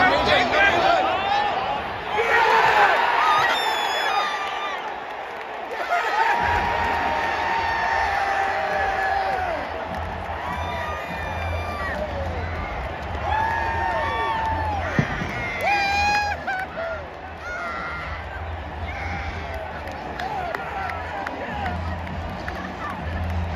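Men nearby shout and cheer loudly.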